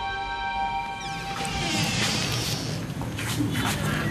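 A door opens and swings shut.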